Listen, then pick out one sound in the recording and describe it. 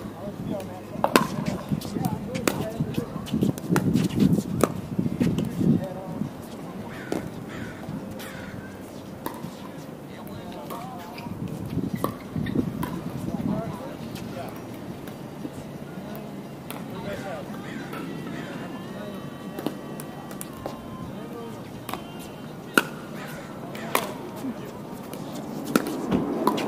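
Men talk casually at a distance outdoors.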